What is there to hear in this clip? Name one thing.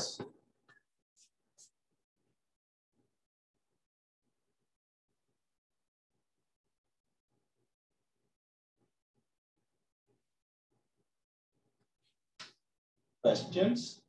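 A man speaks briefly through a microphone, with long silences between.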